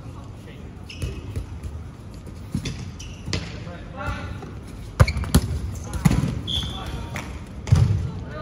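A ball thuds loudly in a large echoing hall.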